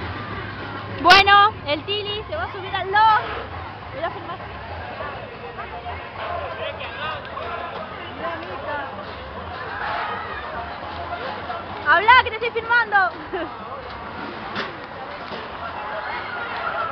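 A crowd chatters in the open air.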